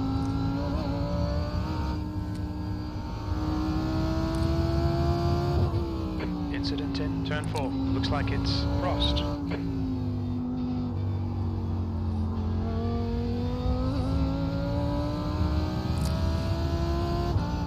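A racing car engine drones steadily, its pitch rising and falling with the gears.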